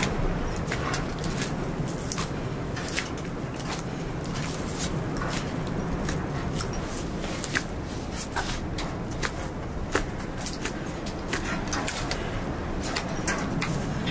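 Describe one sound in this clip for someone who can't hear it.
Metal bangles jingle on a wrist.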